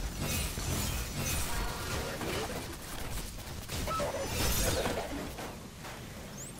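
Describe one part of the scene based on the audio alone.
Gunfire and energy blasts crackle in quick bursts.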